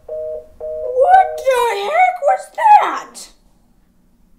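A young woman speaks with animation, her voice rising and falling.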